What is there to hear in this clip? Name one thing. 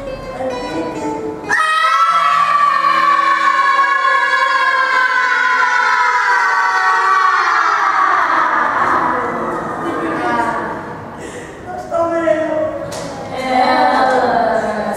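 Dance music with a rising electronic sweep plays loudly through loudspeakers.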